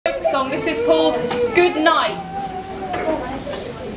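A woman sings along with the children.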